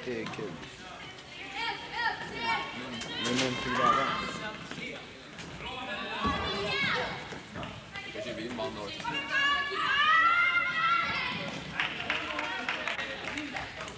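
Children shout and call out excitedly in a large echoing hall.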